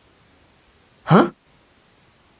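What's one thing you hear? A man gives a short questioning grunt.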